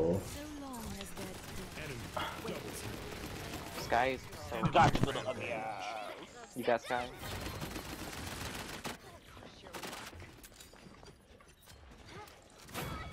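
Gunshots and blasts from a video game fire in quick bursts.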